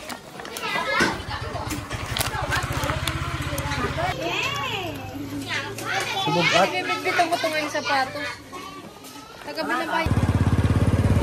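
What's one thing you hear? A motor scooter engine idles with a low putter.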